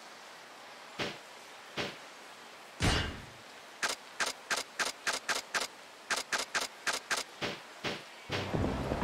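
Short menu clicks blip one after another.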